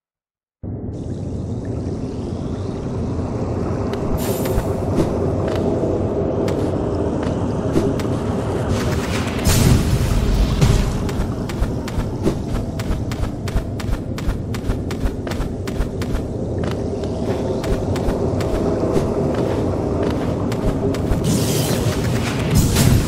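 Soft, moody music plays steadily.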